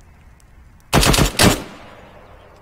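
A heavy machine gun fires a short, loud burst.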